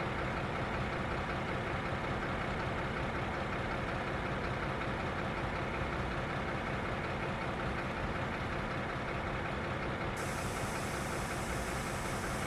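A train's wheels roll slowly along the rails.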